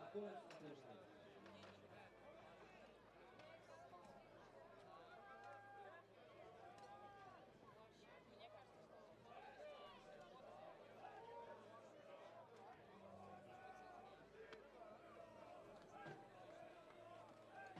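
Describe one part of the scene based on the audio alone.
A large outdoor crowd chatters and murmurs steadily.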